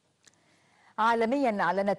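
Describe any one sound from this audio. A woman speaks calmly, reading out through a microphone.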